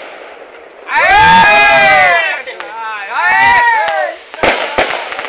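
Fireworks whistle loudly overhead.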